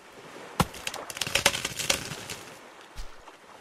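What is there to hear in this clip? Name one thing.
Palm leaves rustle and swish as a frond falls.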